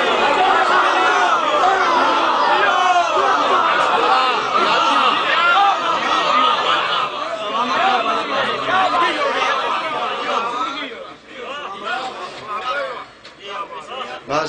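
A young man chants loudly and passionately into a microphone.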